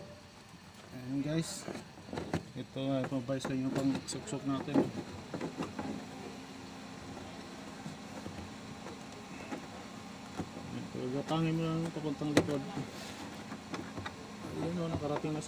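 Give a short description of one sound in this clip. A man talks nearby in a calm voice.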